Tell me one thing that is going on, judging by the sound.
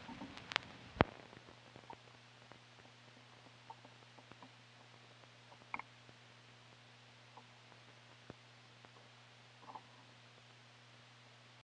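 A vinyl record crackles and pops softly as it spins on a turntable.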